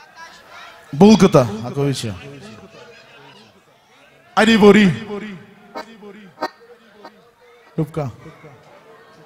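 A man calls out loudly through a microphone in a large echoing hall.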